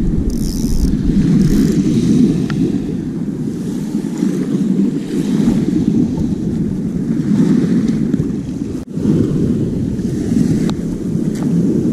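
Small waves wash onto a beach.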